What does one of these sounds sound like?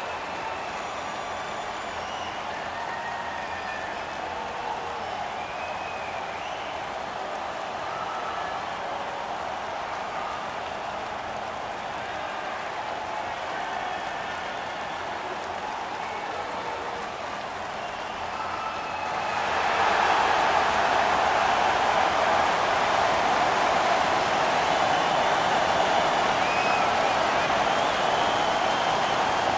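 A large arena crowd cheers loudly, swelling louder partway through.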